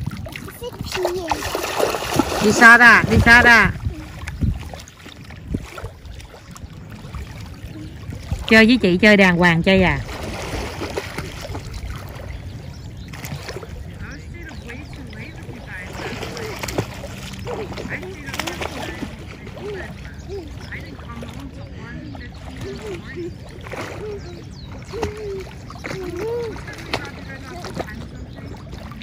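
Water splashes as children wade and paddle in shallow water.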